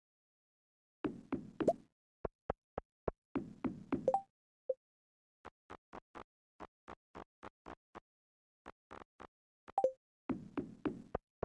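Soft game footsteps tap quickly on a hard path.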